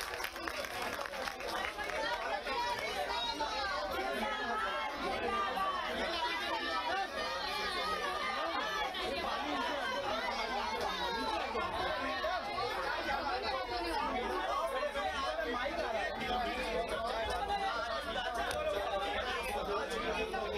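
A crowd of women and children chatter and talk over one another close by.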